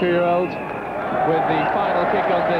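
A large crowd murmurs in an open stadium.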